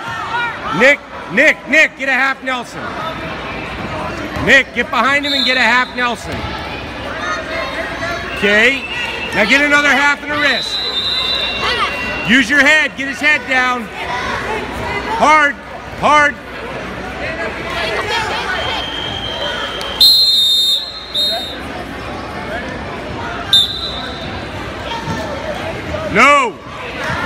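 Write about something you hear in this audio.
Spectators shout and cheer loudly in a large echoing gym.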